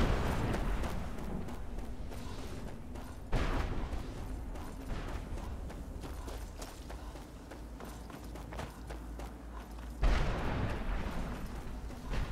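Footsteps in armour crunch on gravel.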